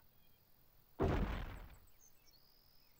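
A soft whooshing thud sounds as a piece is placed.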